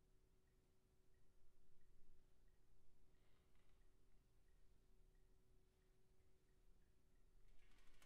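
Brass instruments play a soft, long held note in an echoing hall.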